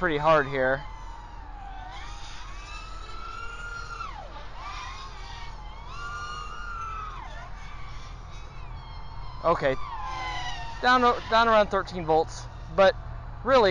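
A small drone's motors whine loudly, rising and falling in pitch as it swoops and climbs.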